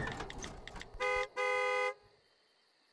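A car horn honks twice loudly.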